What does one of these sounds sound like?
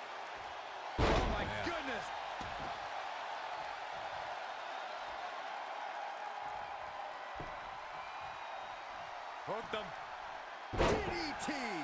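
A heavy body slams down hard onto a wrestling ring mat.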